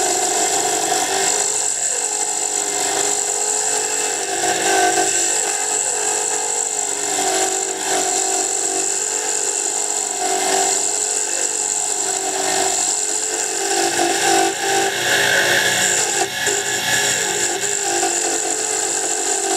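Sandpaper hisses against a spinning hardwood dart blank on a wood lathe.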